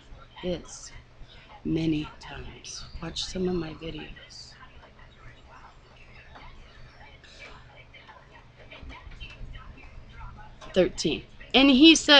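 A middle-aged woman talks close to a microphone, with pauses.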